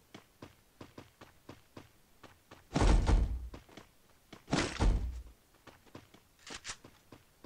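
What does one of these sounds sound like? Footsteps tap steadily across a hard floor.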